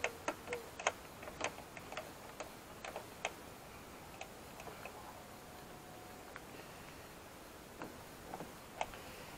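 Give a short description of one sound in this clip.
Plastic clips snap and click as a door panel is pried loose.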